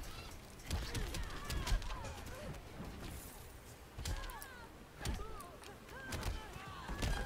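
Heavy blows and impacts thud and crack in a fight.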